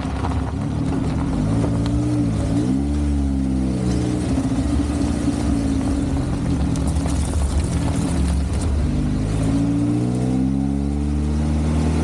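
Tyres roll over a paved road.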